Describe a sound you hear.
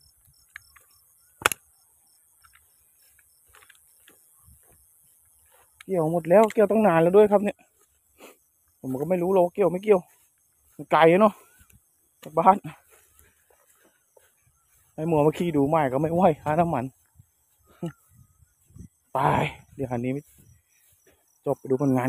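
Footsteps crunch slowly through dry grass.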